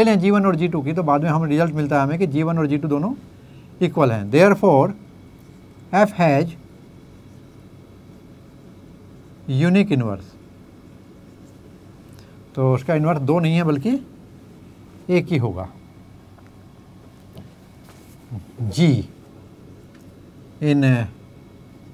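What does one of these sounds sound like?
An elderly man speaks calmly in bursts, close to a microphone, with pauses between.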